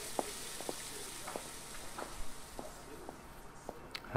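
Shoes tap softly on a hard floor.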